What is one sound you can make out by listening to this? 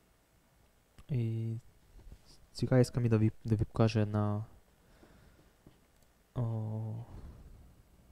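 A man speaks through a microphone in a room, pausing between phrases.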